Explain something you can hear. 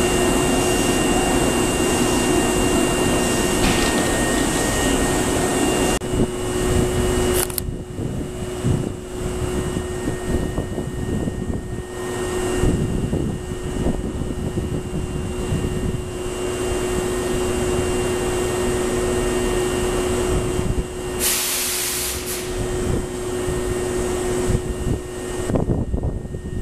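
A train idles at a platform with a steady electric hum.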